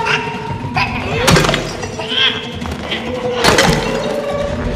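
Something crashes heavily onto a hard floor.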